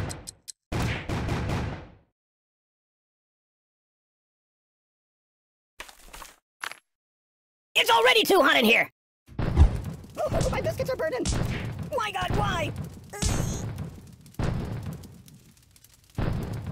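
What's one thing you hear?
Explosions go off with loud booming bangs.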